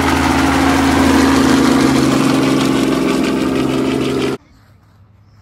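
A helicopter's rotor thumps loudly overhead with a steady engine whine.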